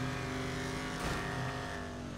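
A car thuds as it leaves a ramp.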